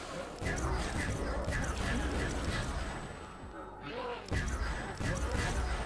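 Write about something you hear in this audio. A ray gun fires repeated zapping shots.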